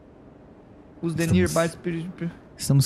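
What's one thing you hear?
A young man speaks animatedly into a close microphone.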